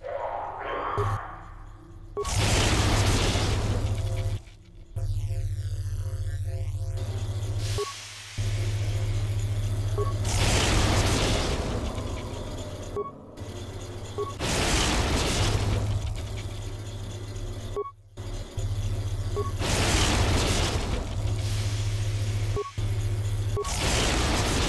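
Soft electronic beeps sound briefly.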